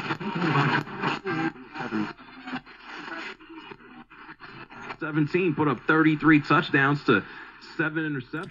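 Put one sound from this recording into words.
A voice talks through a small radio loudspeaker.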